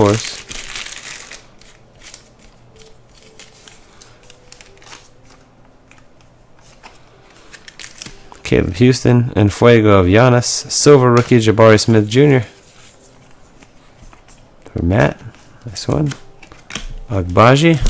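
Trading cards slide and shuffle against each other in someone's hands.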